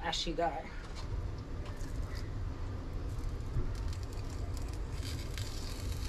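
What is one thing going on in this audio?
Fish sizzles in a hot frying pan.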